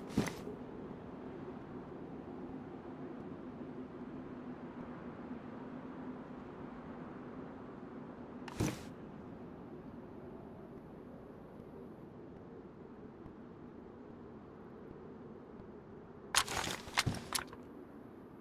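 Short clicks sound a few times.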